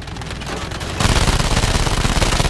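A plane's machine guns fire in a rapid rattle.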